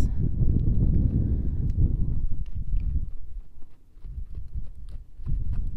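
A horse's hooves thud on dirt as it trots.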